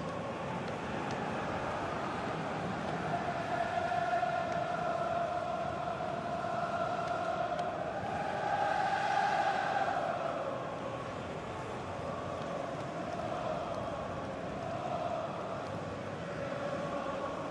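A large stadium crowd sings and chants loudly throughout.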